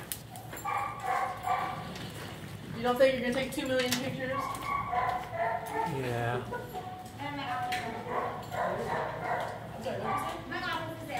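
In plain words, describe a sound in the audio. A dog sniffs along the floor.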